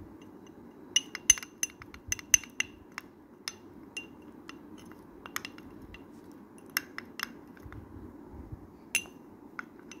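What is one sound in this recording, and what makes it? A metal spoon clinks and scrapes against a glass.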